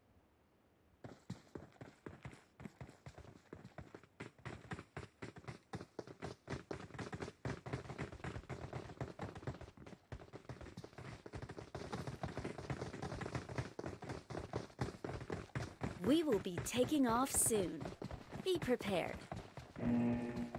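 Footsteps run across hard pavement.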